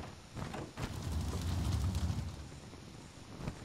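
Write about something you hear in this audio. A short explosion booms with a low rumble.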